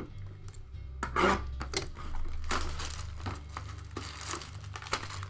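Plastic wrap crinkles and rustles as it is torn off.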